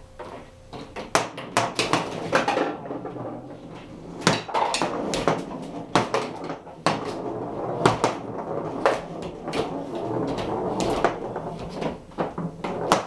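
Foosball rods rattle and knock as players spin them.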